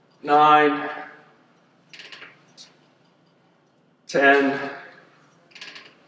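An older man speaks calmly and clearly nearby.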